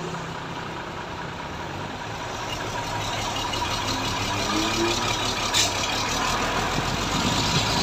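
A large truck engine idles with a low, steady rumble nearby.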